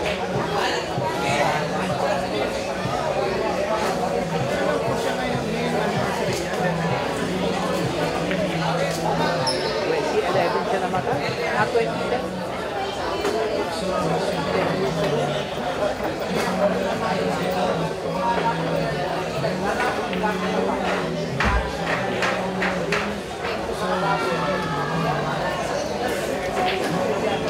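A crowd of men chatters in a large hall.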